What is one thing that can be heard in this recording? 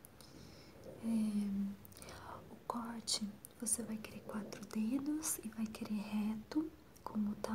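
A young woman speaks softly and very close to a microphone.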